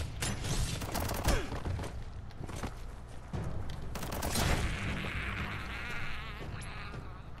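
Fire crackles and roars.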